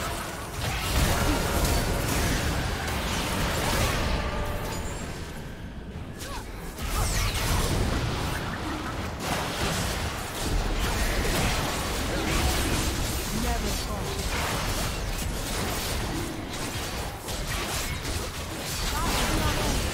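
Game spell effects whoosh and blast during a fight.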